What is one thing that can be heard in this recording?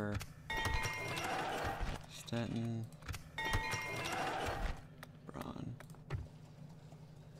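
Game menu clicks and chimes sound as panels open.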